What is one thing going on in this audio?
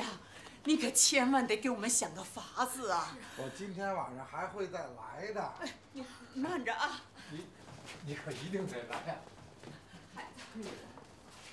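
A middle-aged man pleads with animation nearby.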